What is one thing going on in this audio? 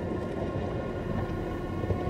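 Rain falls steadily on piles of rubbish.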